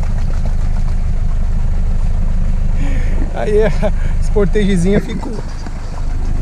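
Muddy water sloshes around car tyres.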